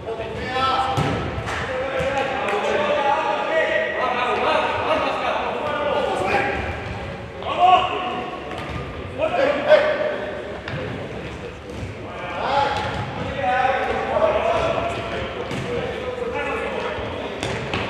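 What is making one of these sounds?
A ball is kicked with sharp thuds in an echoing hall.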